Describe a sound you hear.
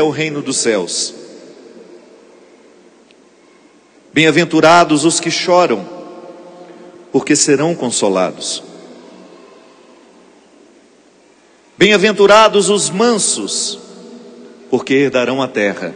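A man speaks calmly into a microphone in an echoing hall, with pauses between phrases.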